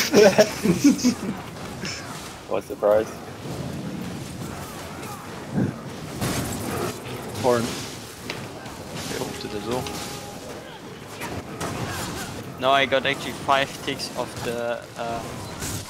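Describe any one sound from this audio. Lightning spells crackle and crash in a fight.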